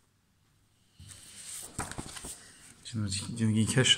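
Paper rustles as a page is moved.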